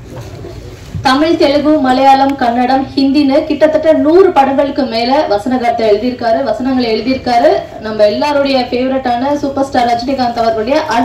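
A young woman speaks into a microphone over a loudspeaker, in a large echoing hall.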